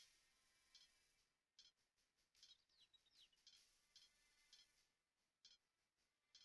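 Swords clash and clink in a skirmish.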